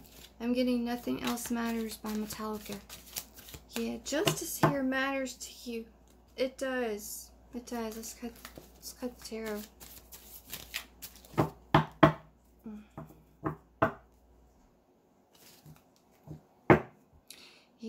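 Cards shuffle and tap in a woman's hands.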